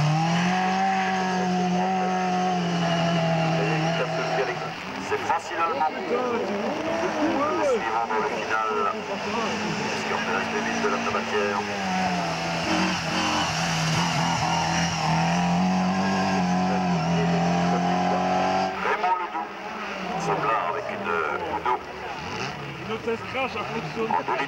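A rally car engine roars at high revs, rising and falling.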